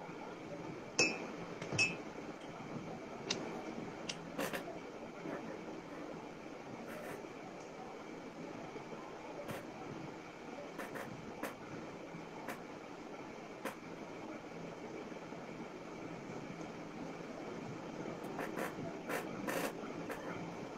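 Hands lightly clap and brush together close by, in a few soft taps.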